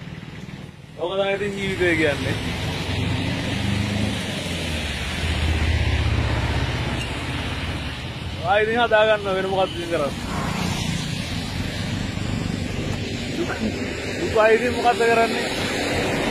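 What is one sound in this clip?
A young man speaks close by with animation.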